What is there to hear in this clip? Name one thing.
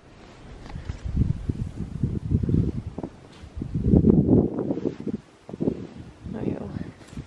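Boots crunch through deep snow in steady footsteps.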